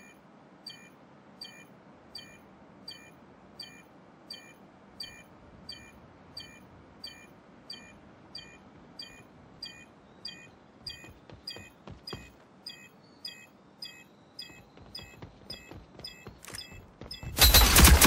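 Footsteps tread quickly and evenly on hard ground.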